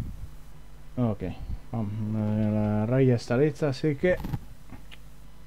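A young man speaks close to a microphone with animation, stretching out one long sound.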